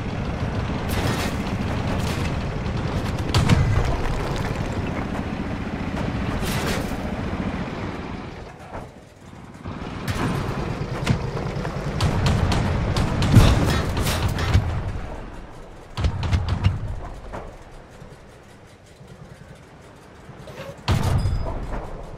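A tank cannon fires with loud, sharp booms.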